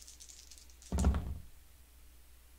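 Dice clatter onto a table.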